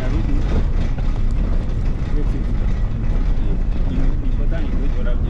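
Wind rumbles and gusts outdoors.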